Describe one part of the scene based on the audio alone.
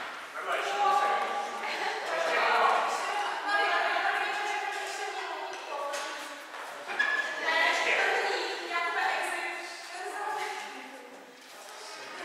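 Adults chat nearby in a large echoing hall.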